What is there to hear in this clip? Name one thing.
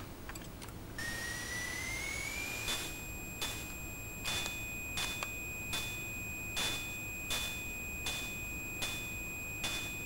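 A video game plays a steady electronic tone that rises briefly then holds.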